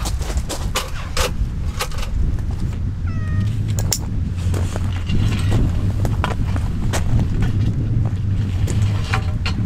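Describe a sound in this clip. Metal parts clink and knock as a folding table is set up.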